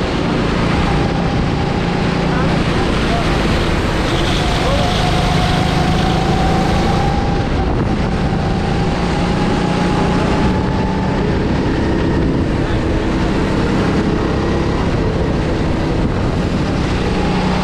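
Another go-kart engine drones nearby.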